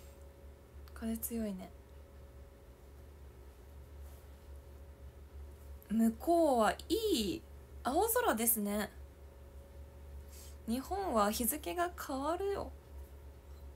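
A young woman speaks casually and close up, in short bursts.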